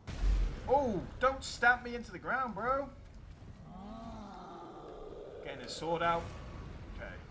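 A huge creature lets out deep, warbling groans.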